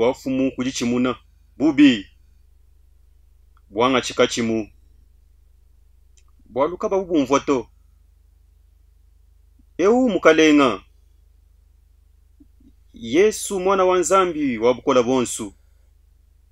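A middle-aged man speaks with animation close to a microphone, in bursts with pauses.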